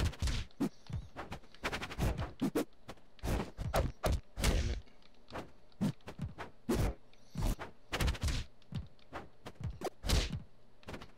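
Cartoonish fighters trade quick hits with sharp thuds and smacks.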